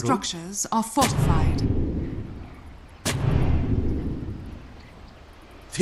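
Game spells burst with deep, rumbling booms.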